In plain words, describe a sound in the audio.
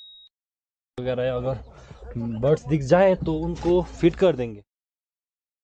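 A young man speaks with animation close to the microphone.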